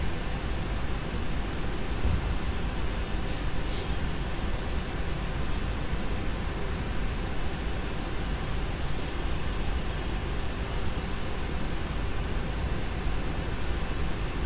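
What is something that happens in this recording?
Jet engines hum steadily as an airliner taxis.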